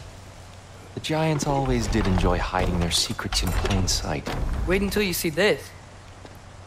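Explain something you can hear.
A man speaks in a deep, low voice.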